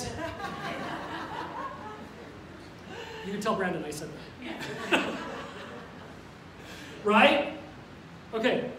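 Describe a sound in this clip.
A middle-aged man speaks with animation into a microphone in a large echoing hall.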